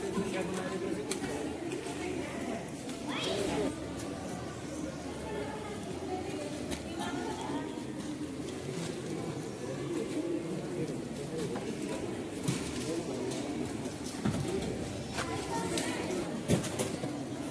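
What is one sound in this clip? Boxes thud as they are loaded into a vehicle.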